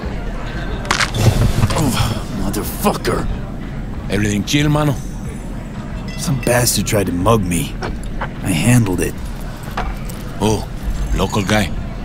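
A man talks calmly and closely in a deep voice.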